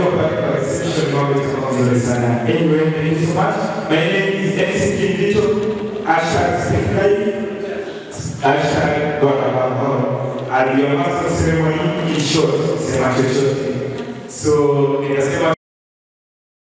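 A young man speaks with animation into a microphone, heard through loudspeakers in a large hall.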